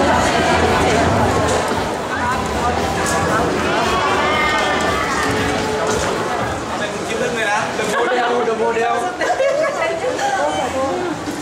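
A young man talks and laughs close by.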